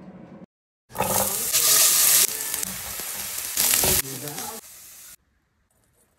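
Diced potatoes sizzle in a hot pan.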